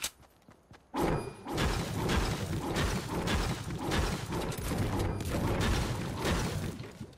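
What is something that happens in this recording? A pickaxe strikes a brick wall again and again in quick, steady blows.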